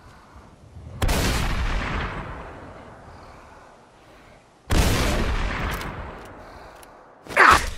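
A shotgun fires loud blasts that echo away.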